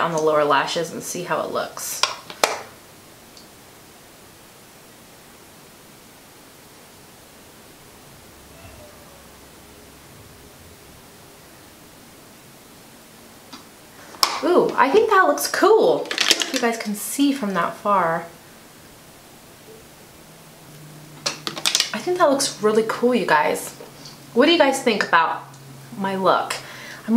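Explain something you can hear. A young woman talks calmly and closely into a microphone.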